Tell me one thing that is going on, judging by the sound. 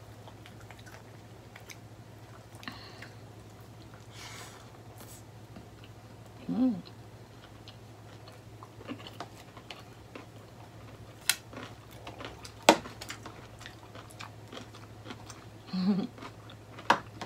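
A young woman chews food close by with soft smacking sounds.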